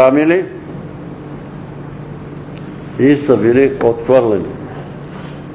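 An elderly man speaks slowly and with feeling in a room with a slight echo.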